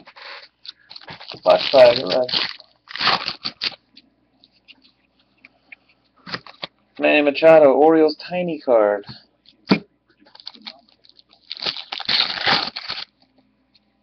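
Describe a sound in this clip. A foil wrapper crinkles as it is torn open.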